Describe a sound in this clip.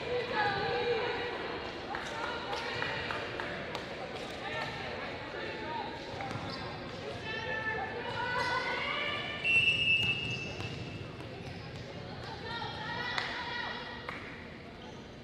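A volleyball smacks off a hand.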